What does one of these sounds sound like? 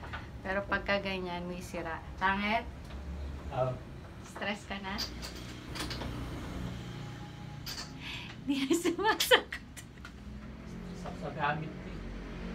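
A woman talks and laughs close by.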